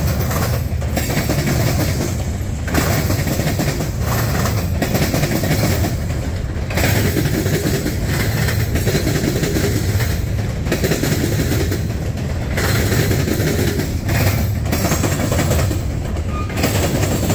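Freight cars rumble and clatter past close by on the rails.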